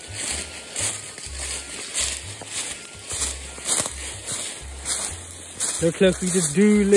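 Footsteps crunch through dry leaves at a steady walking pace.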